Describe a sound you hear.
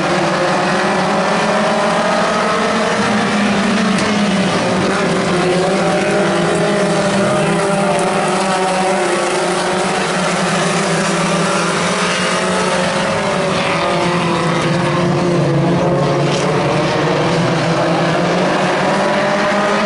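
Race car engines roar loudly and steadily.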